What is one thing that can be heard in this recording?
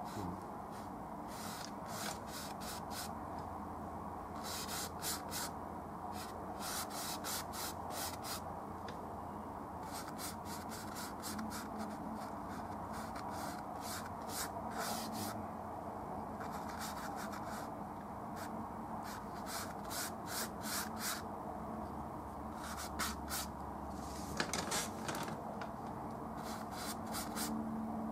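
A brush scrapes and swishes across canvas in quick strokes.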